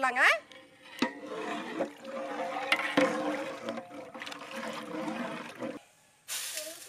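A metal spoon stirs in a pot of liquid.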